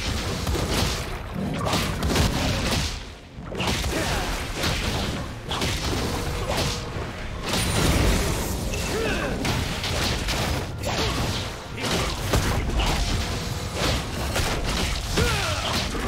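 Fantasy game combat effects whoosh and crackle.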